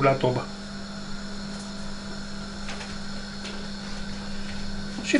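Cooked meat squelches and thuds softly as a hand lifts it from a bowl.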